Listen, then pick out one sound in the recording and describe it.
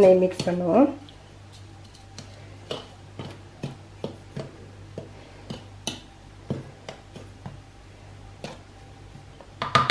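A wooden spoon taps and scrapes in a bowl of flour.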